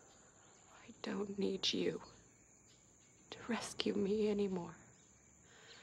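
A young woman speaks intently, close by.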